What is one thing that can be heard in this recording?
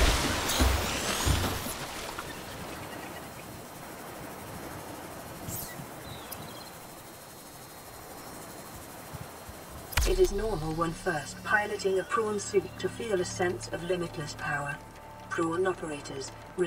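Ocean waves wash gently all around.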